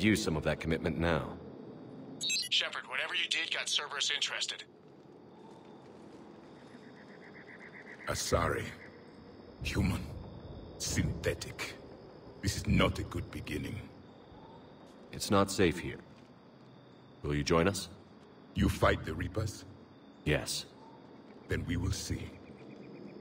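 A man speaks calmly and low, close by.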